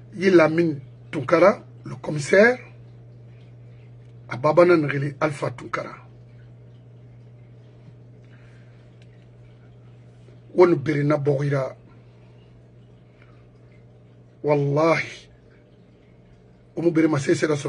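An elderly man speaks slowly and calmly into a microphone nearby, with long pauses.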